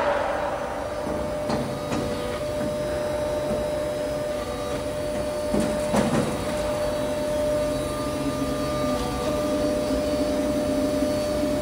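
Machinery hums steadily in a large echoing hall.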